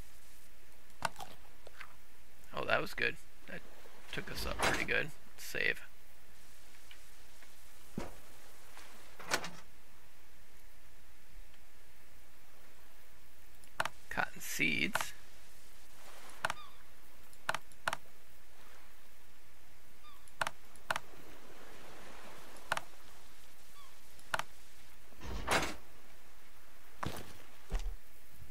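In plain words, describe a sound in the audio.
Game menu clicks and item sounds tick sharply now and then.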